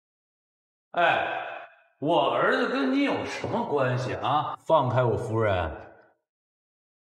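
A man speaks firmly, close by.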